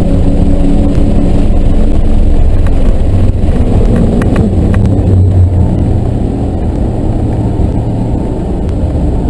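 A car engine roars loudly at high revs from inside the cabin, then eases off.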